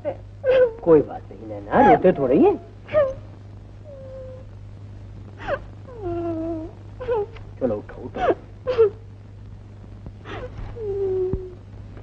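A young woman sobs and wails close by.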